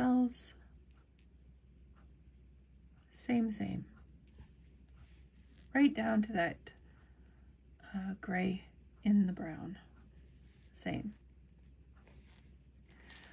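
Hands softly rustle and squeeze balls of yarn.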